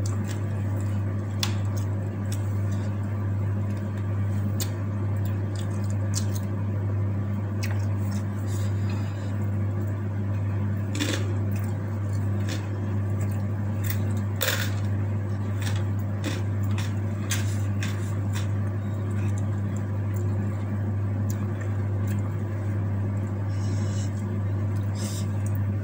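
A woman chews food noisily close by.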